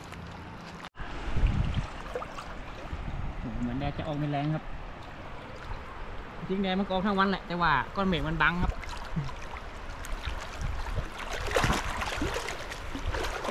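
Water sloshes around a man wading through a flooded river.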